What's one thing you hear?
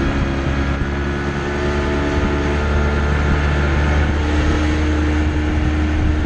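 An outboard motor drones steadily as a small boat moves.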